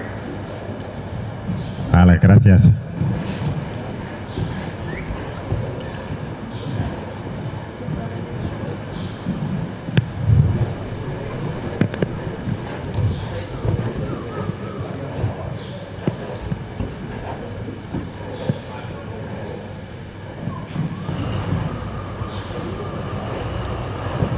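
A horse's hooves thud on soft sand as it canters around a large echoing hall.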